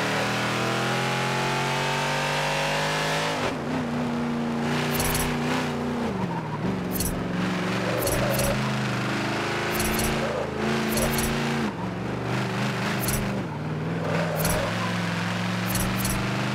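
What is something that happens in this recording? A car engine revs high, then drops and rises as gears shift.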